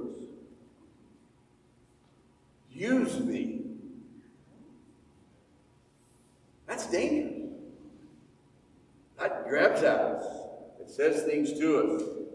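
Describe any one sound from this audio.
An elderly man preaches with feeling through a microphone in an echoing room, pausing between phrases.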